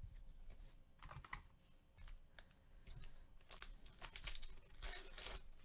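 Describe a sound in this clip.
Foil wrappers crinkle and rustle as packs are handled.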